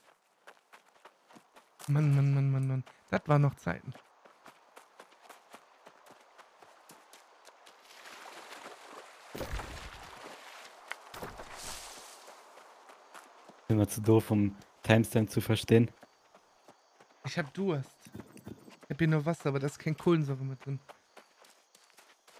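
Footsteps rustle through tall grass.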